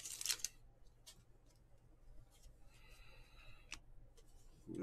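Trading cards rustle and flick as hands shuffle through them.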